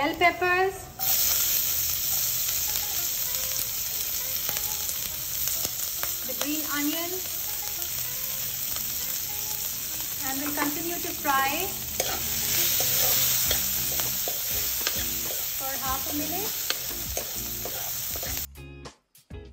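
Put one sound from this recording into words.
Chopped peppers drop into a hot pan and sizzle steadily.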